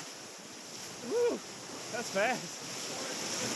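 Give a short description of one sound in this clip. Young adults on a raft shout and whoop outdoors.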